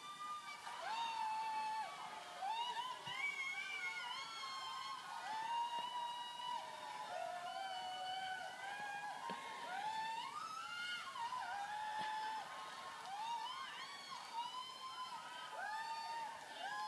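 A middle-aged man sings loudly into a microphone, heard through a television speaker in a room.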